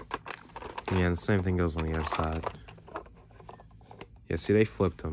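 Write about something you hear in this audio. A plastic toy truck rattles and clicks as hands turn it over.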